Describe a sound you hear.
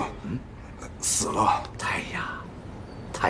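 An elderly man groans and whimpers.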